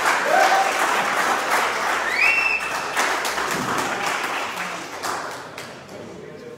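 A group of people applauds in a room.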